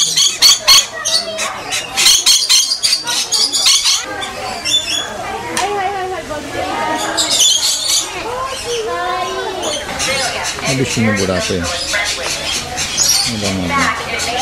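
Parrots chirp and screech sharply up close.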